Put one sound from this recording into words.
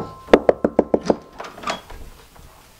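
A fist knocks rapidly on a door.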